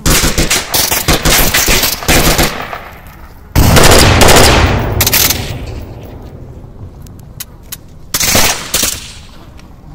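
A rifle fires in rapid bursts, with loud cracks and echoes.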